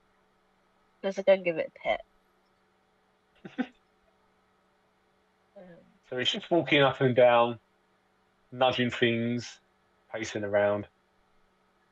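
A man speaks casually over an online call.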